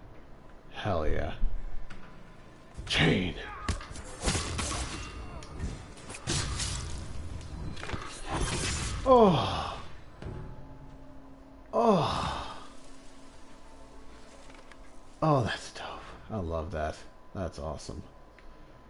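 Men cry out in pain as they are struck down.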